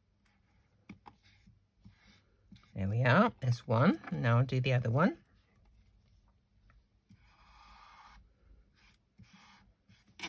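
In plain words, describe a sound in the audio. Paper card rustles softly as hands press it down.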